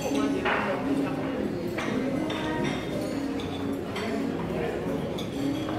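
Several men and women chatter nearby in a busy room.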